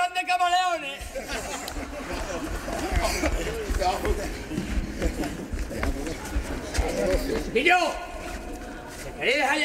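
A group of men laugh and shout together.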